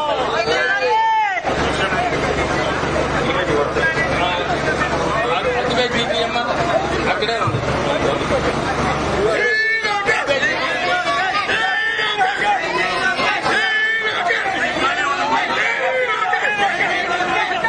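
A large crowd of men and women talks and shouts loudly close by.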